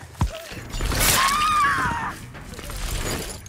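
A blade swishes through the air in a sharp slash.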